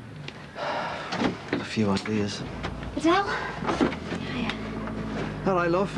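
A man talks on a phone, close by.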